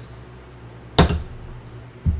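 A mug is set down with a knock.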